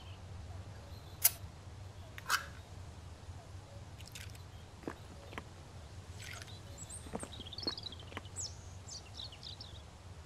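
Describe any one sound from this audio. A spoon scrapes and clinks in a can as someone eats.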